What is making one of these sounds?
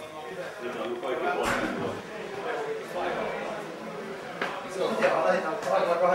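Footsteps climb a wooden staircase.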